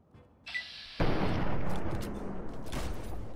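A loud burst of gunfire erupts and roars on.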